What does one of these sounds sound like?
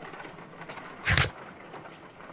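A book's page flips over with a soft rustle.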